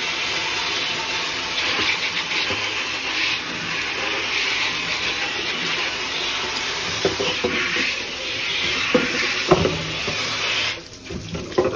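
Water sprays hard inside a plastic water jug.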